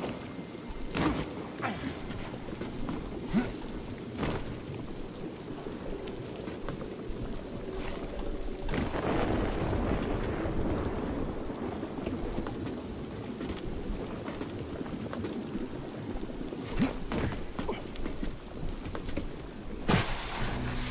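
Loud thuds and impacts sound from a video game.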